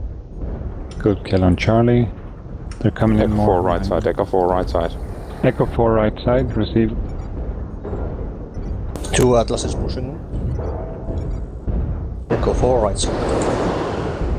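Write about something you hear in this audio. A man talks casually into a nearby microphone.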